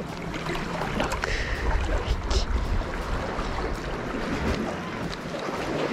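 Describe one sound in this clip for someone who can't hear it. Small waves lap against rocks nearby.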